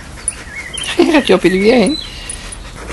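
A dog growls while playing.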